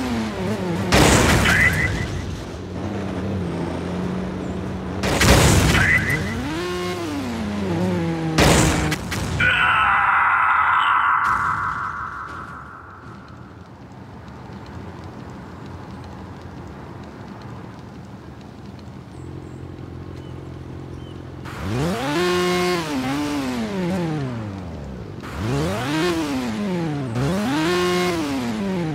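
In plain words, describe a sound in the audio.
A motorcycle engine hums and revs up and down.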